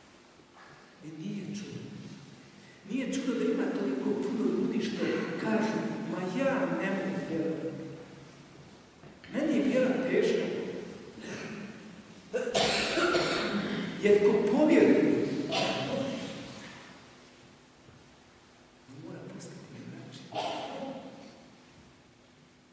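An elderly man preaches with feeling into a microphone, his voice echoing in a large hall.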